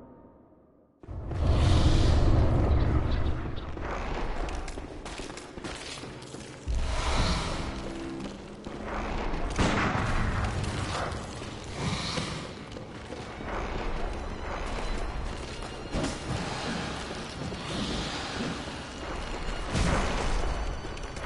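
Heavy blows thud and clash in a fierce fight.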